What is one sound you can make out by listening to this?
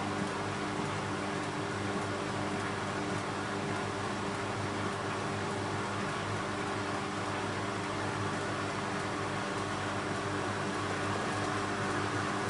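Water and laundry slosh inside a washing machine drum.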